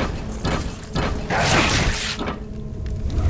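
A fireball roars and bursts.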